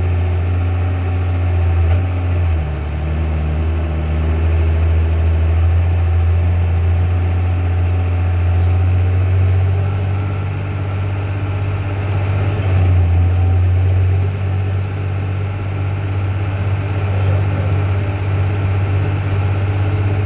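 A tractor engine drones steadily nearby.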